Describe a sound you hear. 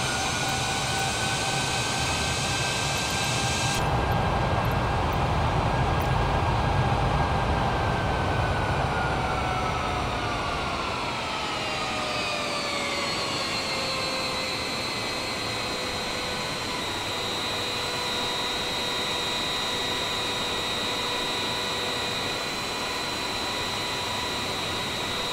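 Jet engines roar steadily with a high whine that slowly falls in pitch.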